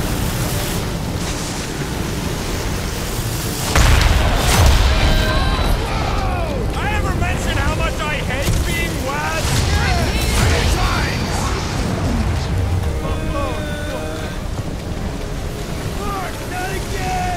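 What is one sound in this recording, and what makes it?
Thunder cracks and rumbles loudly.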